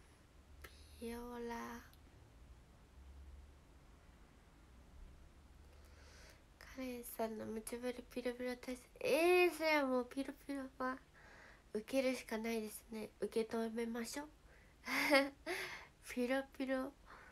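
A young woman speaks softly and cheerfully close to a microphone.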